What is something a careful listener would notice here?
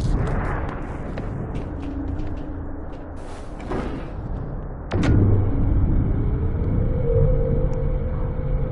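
Machinery hums low and steadily.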